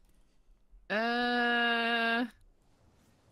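A young woman lets out a long drawn-out exclamation into a headset microphone.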